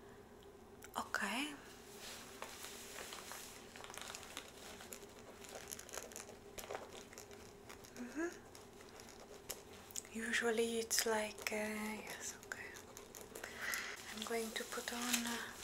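A young woman speaks softly and close by, in a near whisper.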